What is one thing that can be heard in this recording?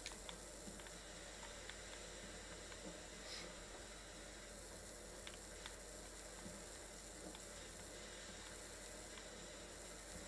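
A pressure washer sprays water in a steady hiss.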